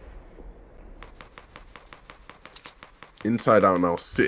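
Rapid gunshots crack in quick succession.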